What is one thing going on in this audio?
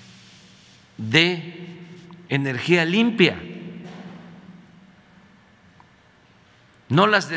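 An elderly man speaks calmly into a microphone, in short bursts.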